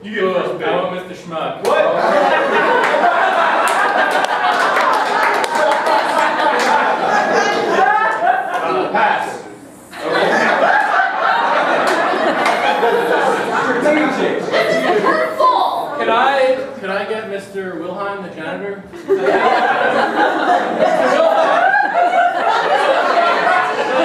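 Young women and men talk over each other with animation.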